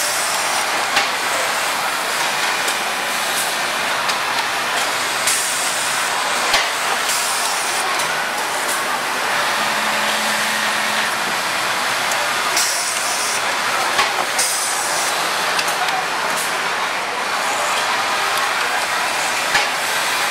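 Pneumatic parts of a machine click and puff now and then.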